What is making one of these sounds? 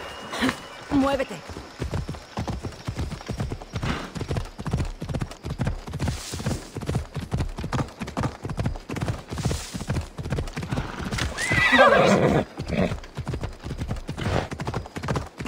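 Horse hooves thud steadily on rough ground.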